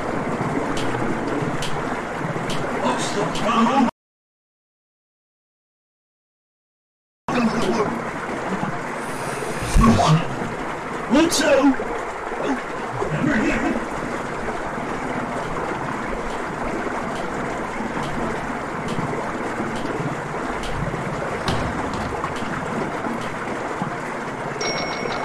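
A sharp slap sounds several times.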